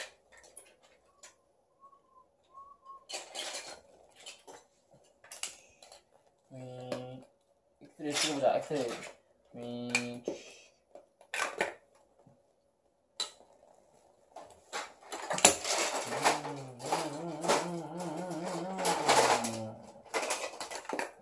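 Plastic toy blocks clatter and click.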